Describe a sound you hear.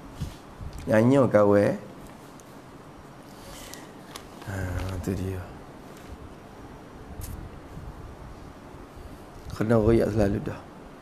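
A man speaks calmly into a nearby microphone, pausing between phrases.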